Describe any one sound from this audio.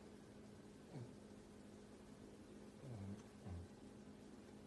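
A pug grunts and snorts.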